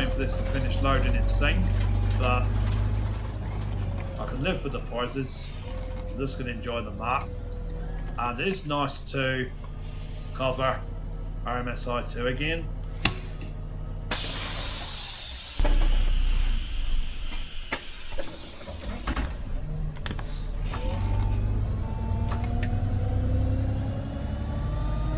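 A bus engine hums steadily and rises and falls as the bus drives.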